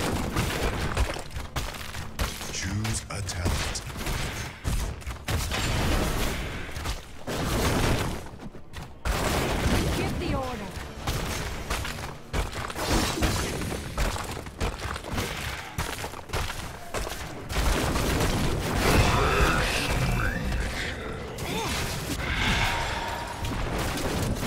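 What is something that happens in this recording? Spell blasts and weapon hits crackle and clash in a fight.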